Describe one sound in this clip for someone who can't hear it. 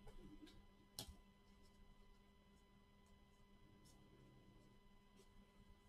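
A plastic wrapper crinkles and tears as it is opened.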